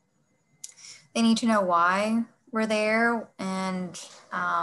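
A second woman speaks with animation over an online call.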